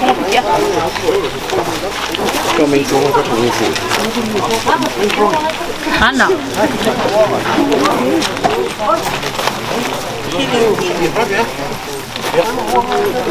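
A crowd of men talk and call out all around, close by, outdoors.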